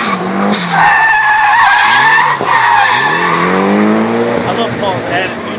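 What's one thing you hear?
A car engine revs loudly outdoors.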